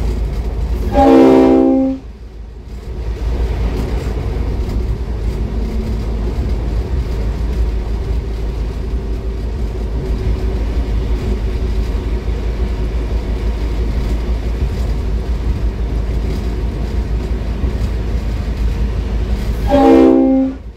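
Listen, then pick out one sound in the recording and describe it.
A train horn sounds loudly twice.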